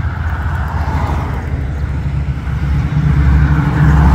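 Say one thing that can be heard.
A hot rod rumbles as it approaches.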